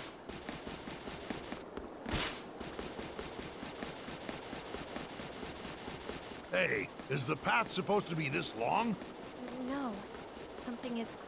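Quick footsteps run steadily over stone.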